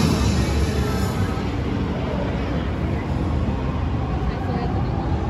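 A fog machine hisses steadily.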